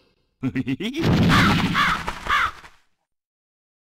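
A video game bird screeches.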